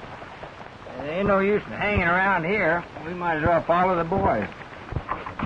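A man sings in a wavering voice nearby.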